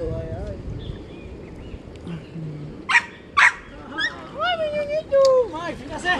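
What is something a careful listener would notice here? Young people shout and call out from across the water.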